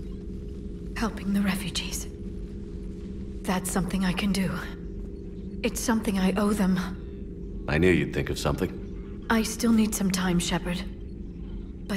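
A young woman speaks softly and hesitantly, close by.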